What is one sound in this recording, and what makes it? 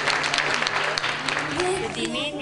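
A young boy speaks into a microphone.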